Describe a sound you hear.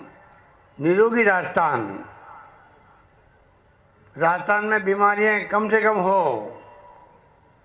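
A middle-aged man speaks into a microphone over a loudspeaker, with pauses between phrases.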